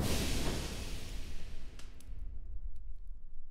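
Steam hisses loudly and fades away.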